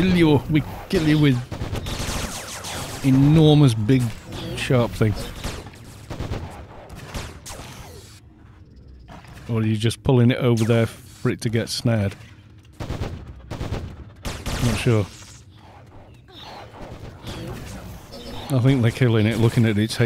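A man talks casually and close into a microphone.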